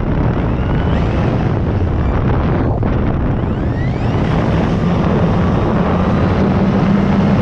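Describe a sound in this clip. Wind rushes loudly past the aircraft.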